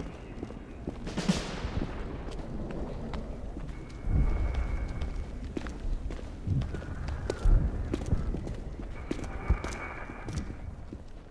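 Footsteps thud on creaking wooden floorboards.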